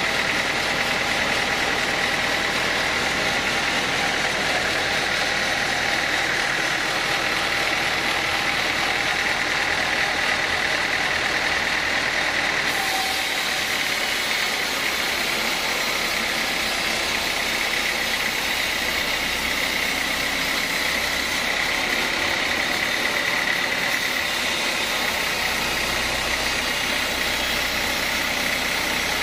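A band saw whines loudly and steadily as it cuts through a large log.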